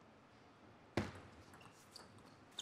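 A table tennis ball clacks sharply as it is hit back and forth.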